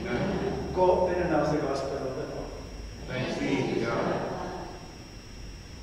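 A man speaks or chants through a microphone in a large echoing room.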